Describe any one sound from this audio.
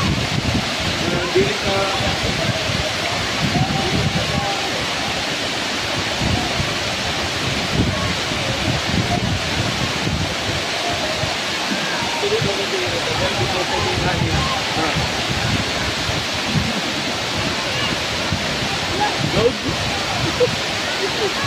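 A waterfall roars steadily, water crashing onto rocks and into a pool.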